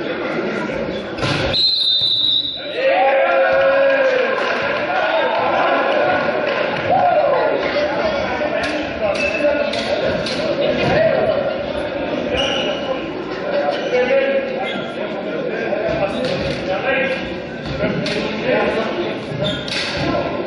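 Volleyball players shout and call to each other in a large echoing hall.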